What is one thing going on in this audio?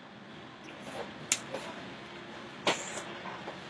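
Hands slap and brush lightly against clothing.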